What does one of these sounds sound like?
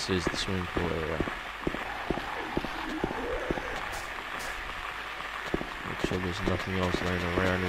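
Footsteps run quickly on hard paving.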